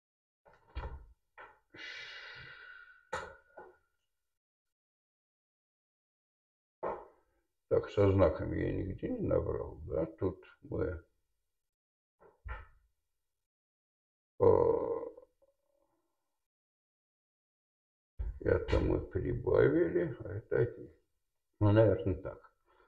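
A man lectures nearby, speaking calmly with pauses.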